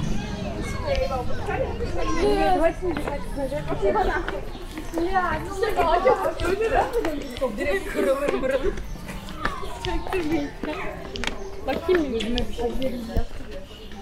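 Young women chat and laugh nearby outdoors.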